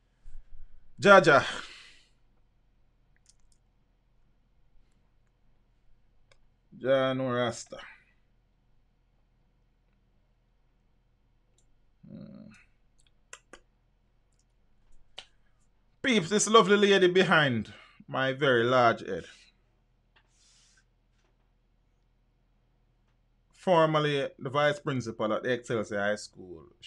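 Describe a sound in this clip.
A man speaks into a microphone close by, in short bursts with pauses.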